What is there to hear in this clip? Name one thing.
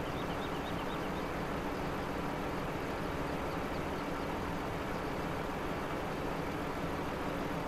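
A forestry machine's diesel engine rumbles steadily.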